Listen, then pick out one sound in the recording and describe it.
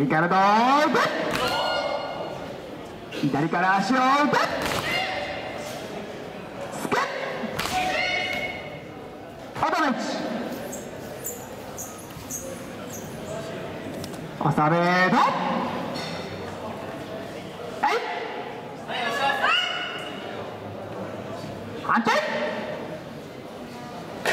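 Young men shout sharp battle cries in a large echoing hall.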